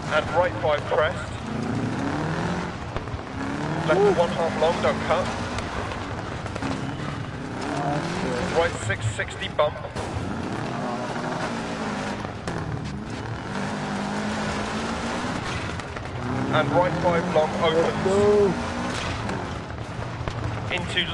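Tyres crunch and rumble over loose gravel.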